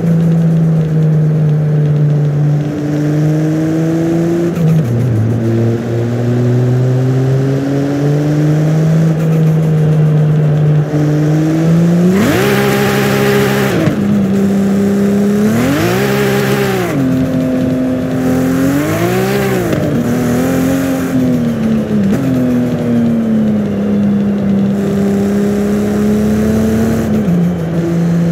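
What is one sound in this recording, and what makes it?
A sports car engine roars, revving up and down through the gears.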